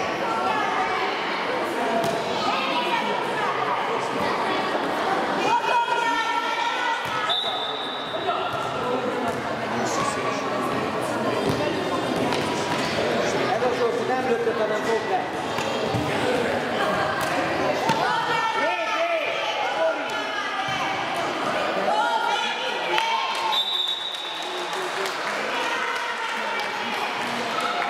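Sports shoes squeak on a hard floor.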